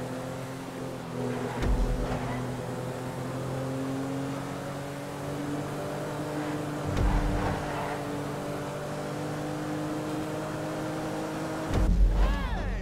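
A car engine hums steadily as a car drives fast.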